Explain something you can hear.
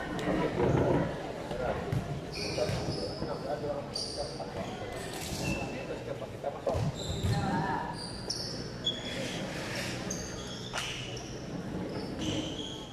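Sneakers squeak on a hard court in a large echoing hall.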